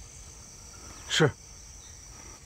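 A young man answers briefly, close by.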